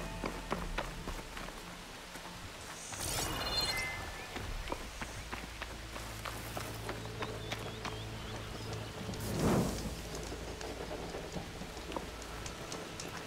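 Footsteps crunch on dirt and gravel at a steady walking pace.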